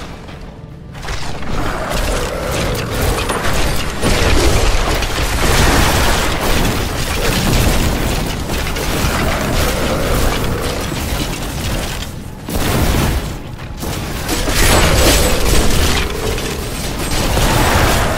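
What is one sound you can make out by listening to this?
Magic spells whoosh and blast in a fight.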